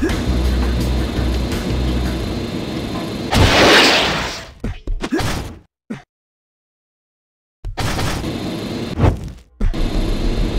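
A jetpack hisses and roars in bursts.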